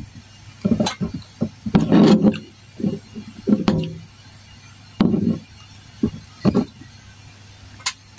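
Food rustles and squelches in a bowl as a gloved hand mixes it.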